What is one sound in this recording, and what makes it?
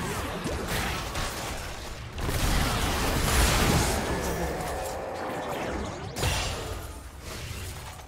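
Spell blasts and impacts crash and whoosh during a fight.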